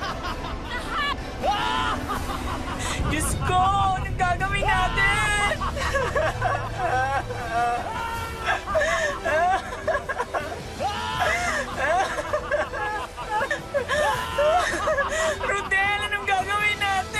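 A young woman sings with feeling.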